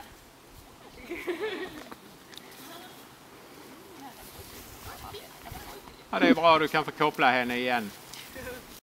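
A woman talks with animation at a distance outdoors.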